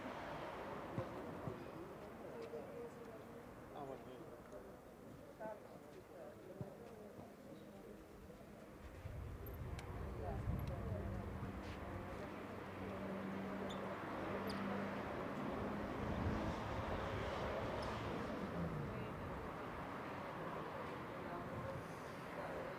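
A man talks quietly at a distance, outdoors.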